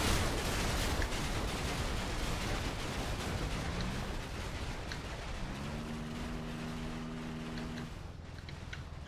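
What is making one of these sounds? A small vehicle's engine hums as it drives over snow.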